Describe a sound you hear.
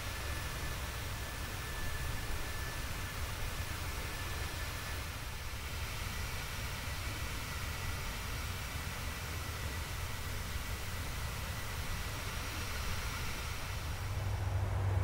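Jet engines roar steadily in flight.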